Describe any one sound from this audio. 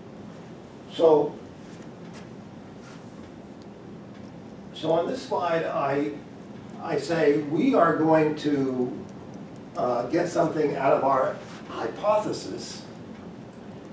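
A middle-aged man lectures calmly.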